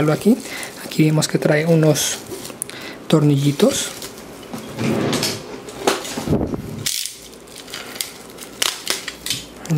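Bubble wrap crinkles and rustles close by.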